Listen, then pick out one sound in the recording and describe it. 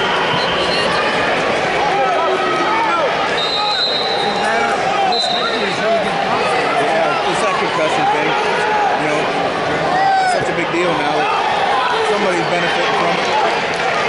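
Shoes squeak on a mat.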